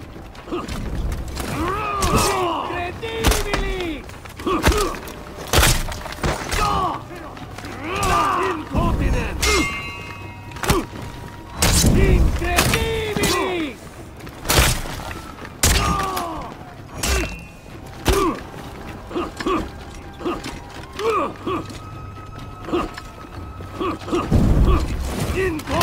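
Steel blades clash and ring sharply, again and again.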